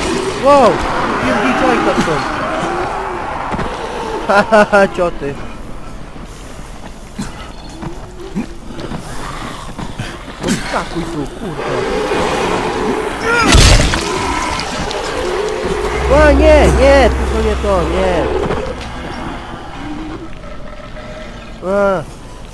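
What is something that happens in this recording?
Zombies groan and snarl close by.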